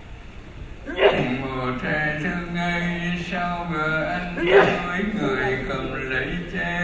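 A man chants in a steady voice through a microphone, echoing in a large hall.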